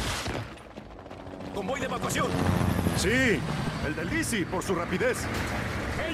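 A helicopter's rotors thump loudly overhead.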